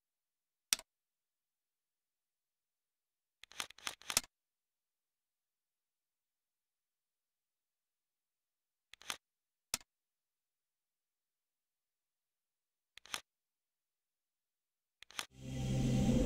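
Short menu clicks and blips sound now and then.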